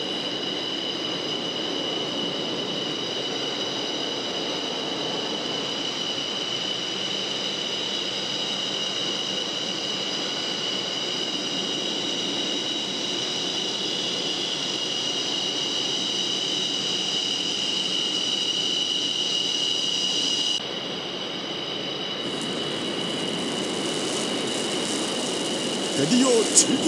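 Jet engines roar loudly as fighter planes take off.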